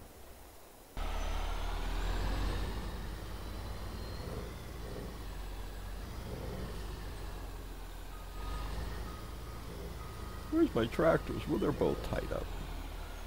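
A truck's diesel engine starts up and idles with a low rumble.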